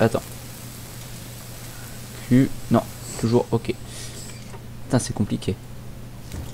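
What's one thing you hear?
A cutting torch hisses and crackles as it burns through metal.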